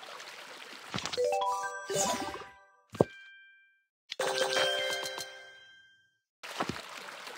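Bright chiming tones ring out in quick little runs.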